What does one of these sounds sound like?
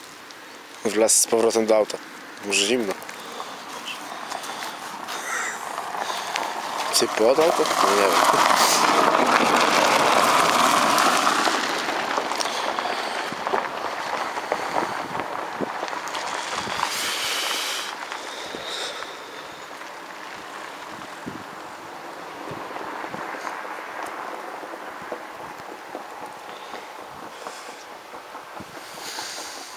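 A man speaks nearby.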